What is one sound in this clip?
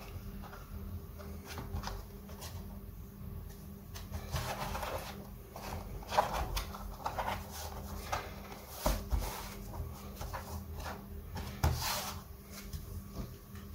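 Hands press and slide across a plastic case, with soft scraping and tapping.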